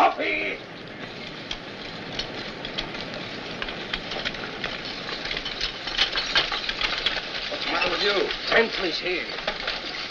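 Wagon wheels rumble and creak over the ground.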